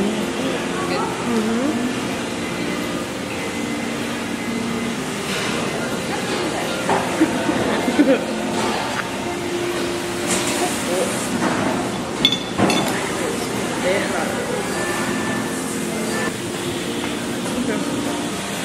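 Young women talk casually close by.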